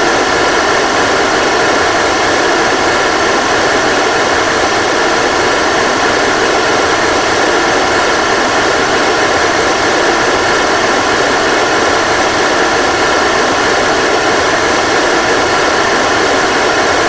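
Rocket engines roar steadily.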